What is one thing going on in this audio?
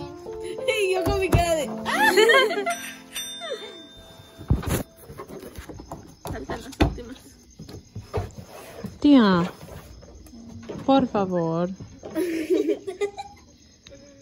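Young women talk and laugh close by with animation.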